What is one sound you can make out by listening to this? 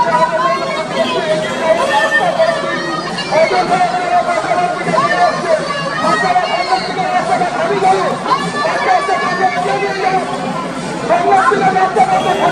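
A large crowd chatters and shouts nearby outdoors.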